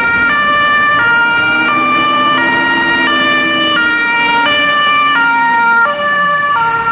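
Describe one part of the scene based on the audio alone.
A fire engine's motor rumbles as it drives past.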